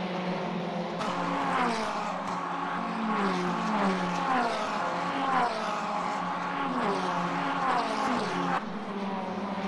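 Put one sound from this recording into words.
Racing car engines rev up and down sharply as gears shift.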